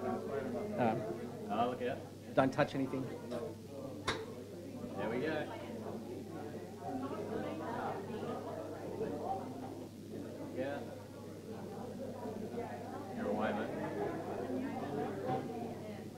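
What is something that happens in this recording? Several adults chat at once in a room with a slight echo.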